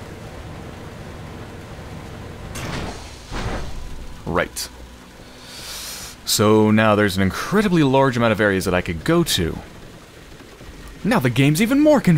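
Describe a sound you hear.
Heavy rain pours down steadily.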